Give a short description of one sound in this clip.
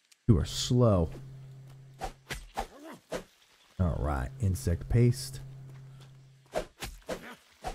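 A pickaxe strikes a carcass with dull thuds.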